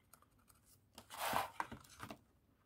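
A cardboard box flap rustles as it is opened.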